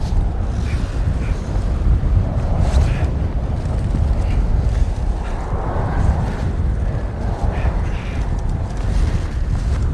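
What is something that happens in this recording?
Strong wind roars and gusts in a storm.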